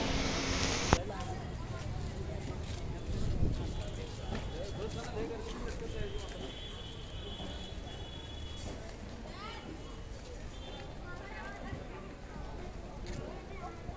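A busy street murmurs with distant chatter and traffic.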